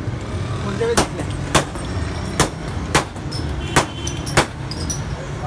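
Glass bottles clink and rattle in plastic crates.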